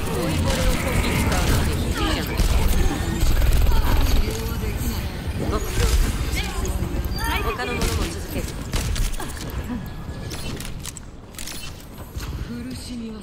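Rapid gunfire rattles from a game rifle.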